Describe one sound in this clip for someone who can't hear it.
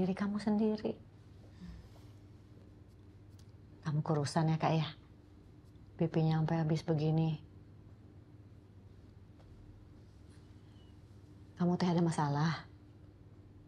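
A middle-aged woman speaks softly and calmly, close by.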